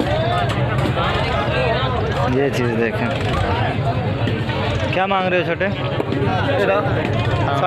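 Men talk and call out in a busy outdoor crowd.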